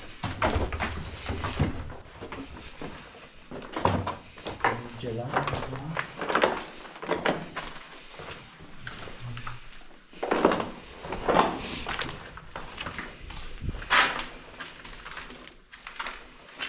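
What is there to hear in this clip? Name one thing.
Footsteps crunch and scrape over loose rubble and debris.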